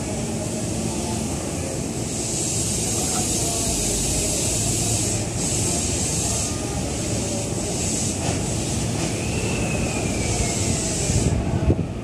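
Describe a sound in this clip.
A train rolls slowly along the track with a low, steady rumble.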